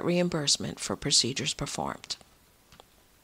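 A woman speaks clearly and warmly into a microphone.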